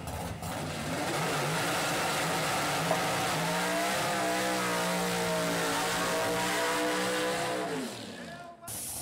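A drag racing engine revs hard and roars loudly.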